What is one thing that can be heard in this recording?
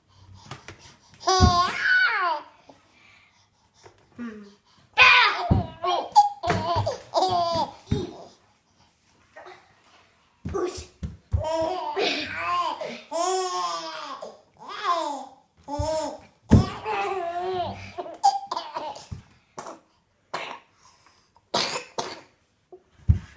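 A baby babbles and squeals close by.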